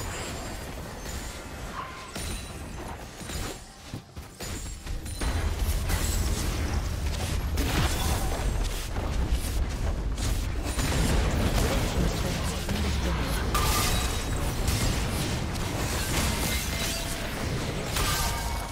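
Game spells crackle, whoosh and boom during a fast battle.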